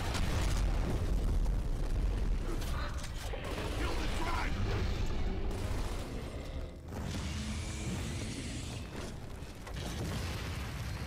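Explosions rumble loudly.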